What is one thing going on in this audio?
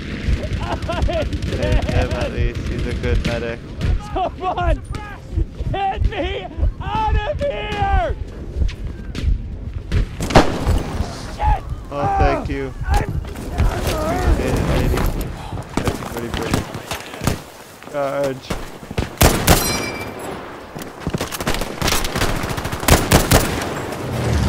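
Gunfire cracks and booms across a battlefield.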